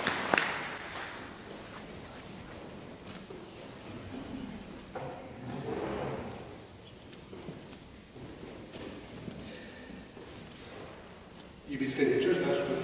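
A crowd of adults and children murmurs and chatters in a large echoing hall.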